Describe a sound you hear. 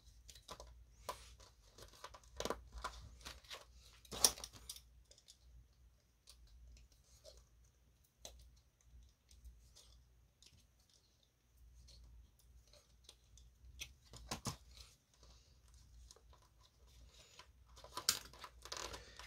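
Cardboard holders tap and click against plastic.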